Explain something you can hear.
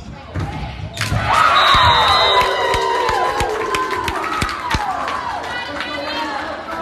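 A crowd cheers loudly after a point.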